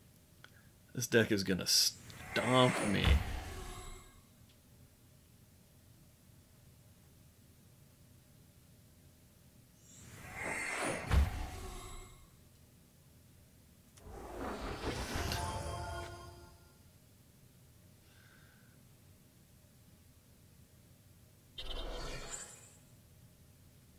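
A man speaks close to a microphone in short bursts.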